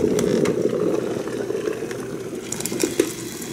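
Liquid pours into a mug.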